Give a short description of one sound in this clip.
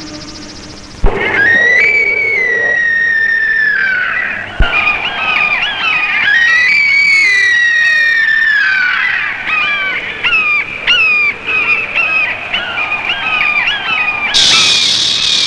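Vultures screech harshly and repeatedly.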